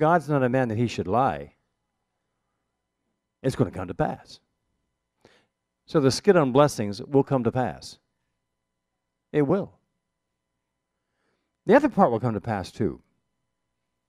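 An elderly man speaks calmly and expressively into a close microphone, pausing between phrases.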